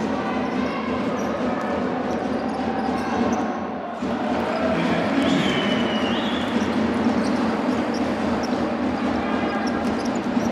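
A large crowd cheers and murmurs in a big echoing hall.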